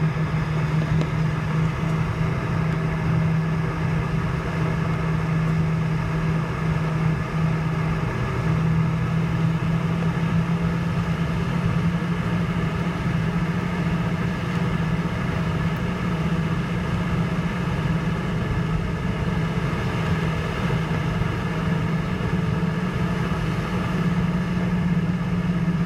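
Jet engines hum and whine steadily from inside an airliner cabin.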